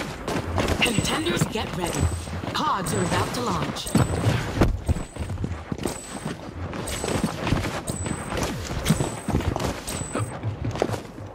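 A short electronic beep repeats once a second as a countdown.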